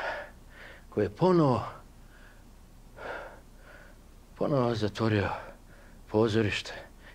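An elderly man speaks calmly and expressively, close by.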